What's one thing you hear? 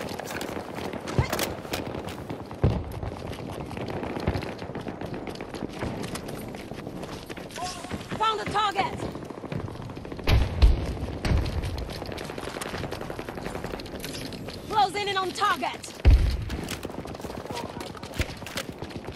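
Footsteps run over hard pavement.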